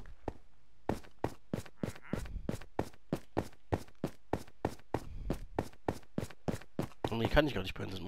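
Footsteps tap quickly and evenly on stone.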